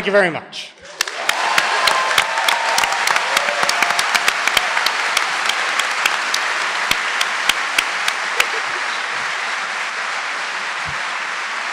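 An audience claps and applauds.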